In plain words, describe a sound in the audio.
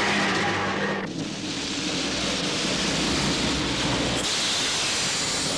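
A car engine rumbles up close.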